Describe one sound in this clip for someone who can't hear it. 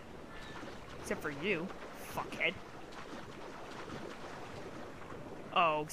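Water splashes as a swimmer strokes through it.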